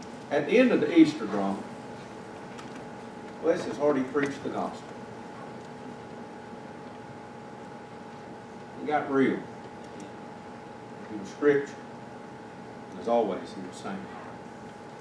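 A man speaks calmly through a microphone with pauses, in a room with some echo.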